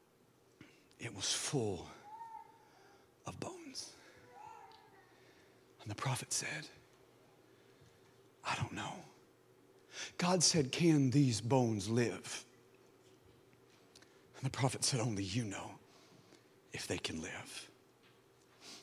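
A man preaches with animation through a microphone, pausing between phrases.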